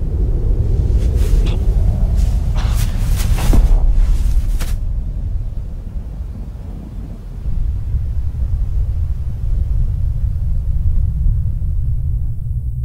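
Wind blows steadily through tall grass outdoors.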